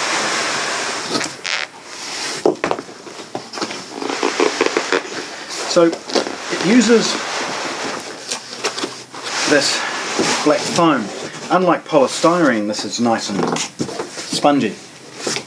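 Cardboard packaging scrapes and rustles.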